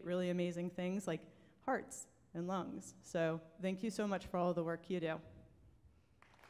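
A woman speaks warmly into a microphone.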